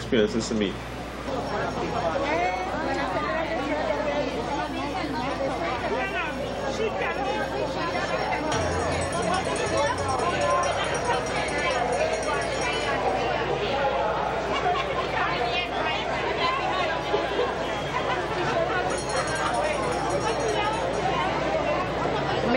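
A large crowd chatters and calls out all around, outdoors.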